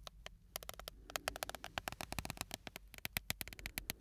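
Fingers scratch and tap on a microphone's foam cover.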